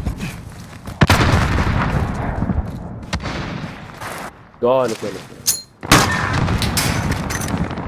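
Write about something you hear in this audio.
Gunshots crack and boom loudly.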